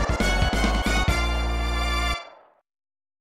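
Loud electronic game music plays a short fanfare and stops.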